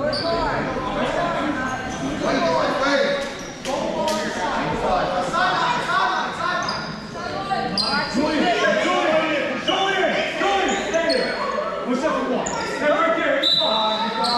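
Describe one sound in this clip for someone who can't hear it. Children and adults shout and cheer in a large echoing gym.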